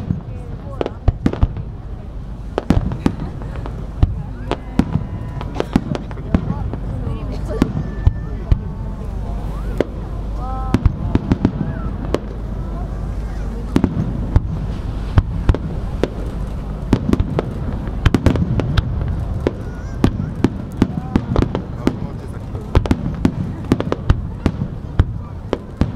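Fireworks crackle and fizz as they rise.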